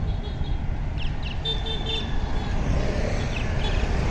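Motor scooters hum past close by.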